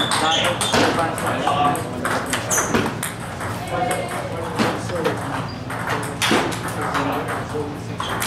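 Ping-pong balls click rapidly on paddles and tables.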